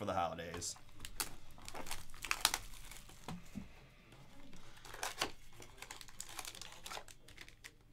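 A foil card pack crinkles and rustles as it is torn open.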